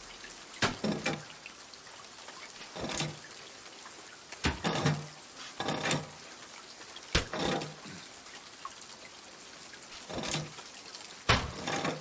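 Metal weights clink onto the pans of a balance scale.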